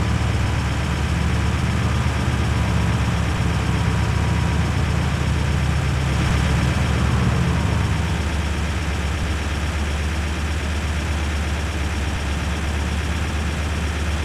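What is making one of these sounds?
Tyres roll on a highway.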